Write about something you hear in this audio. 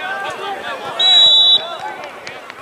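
A referee's whistle blows a short, shrill blast.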